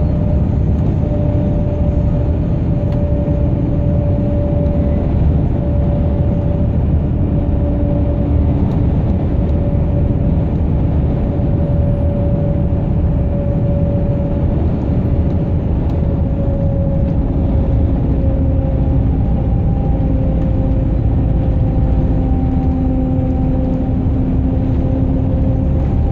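A truck engine drones steadily from inside the cab.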